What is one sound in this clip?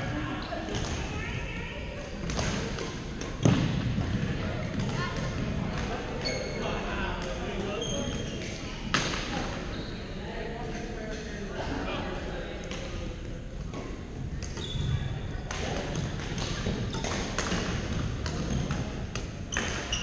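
Shuttlecocks are struck with rackets, echoing in a large hall.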